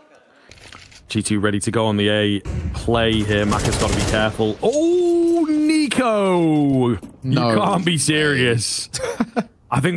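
A man talks excitedly into a headset microphone.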